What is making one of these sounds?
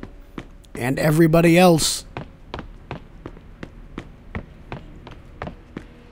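Hard-soled footsteps walk steadily across a tiled floor.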